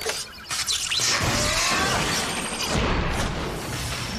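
A robot's metal body bursts apart with a loud crash of scattering debris.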